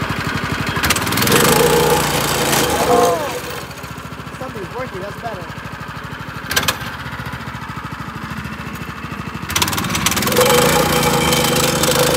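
A small gasoline engine revs up loudly, then drops back.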